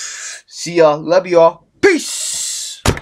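A young man speaks loudly and with animation close to a microphone.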